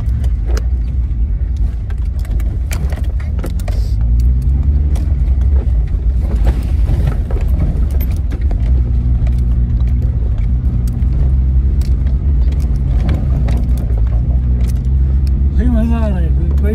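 A car engine hums low and steadily from inside the vehicle.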